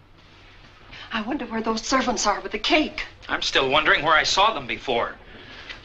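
A woman talks with animation.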